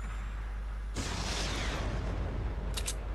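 A rifle fires a single loud shot that rings out and fades.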